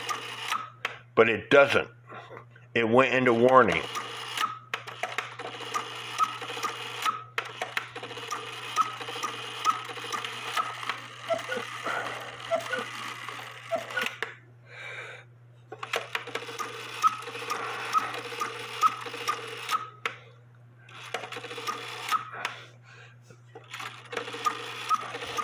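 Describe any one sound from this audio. A mechanical clock ticks steadily and evenly close by.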